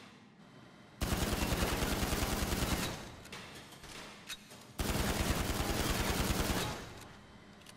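A pistol fires rapid shots in quick bursts.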